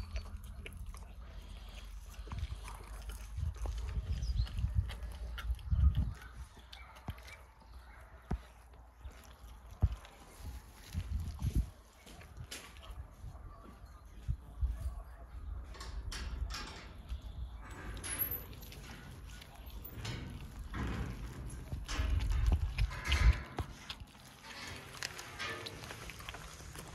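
Lion cubs chew and tear at raw meat, with wet crunching and tearing sounds.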